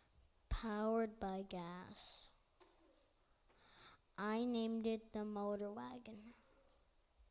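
A young boy speaks into a microphone in short bursts, heard through a loudspeaker in a hall.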